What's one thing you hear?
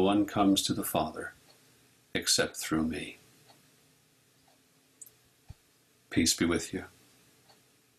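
A middle-aged man speaks calmly into a microphone, heard as if over an online call.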